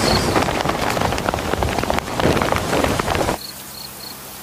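A large kite flaps and rustles in the wind.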